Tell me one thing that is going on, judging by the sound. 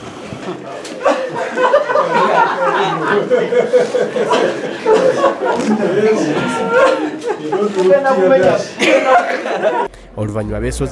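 Several men talk and greet each other nearby.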